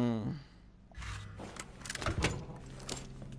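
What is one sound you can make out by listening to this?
A heavy chest lid thuds shut.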